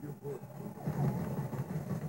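An explosion booms through a television speaker.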